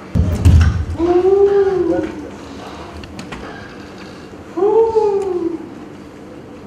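A woman cries out with animation on a stage, heard with a slight echo.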